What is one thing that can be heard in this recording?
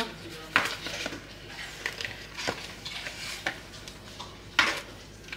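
Paper crinkles and rustles up close.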